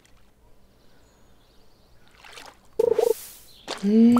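A fish splashes as it is pulled out of the water.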